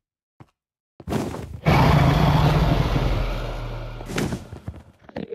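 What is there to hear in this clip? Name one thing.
A dragon lets out a loud, rumbling roar that slowly fades.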